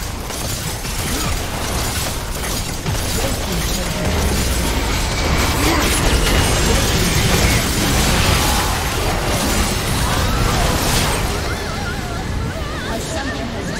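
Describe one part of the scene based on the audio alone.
Spell effects crackle and blast in a game battle.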